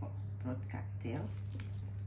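Diced vegetables tumble from a metal strainer into a plastic bowl.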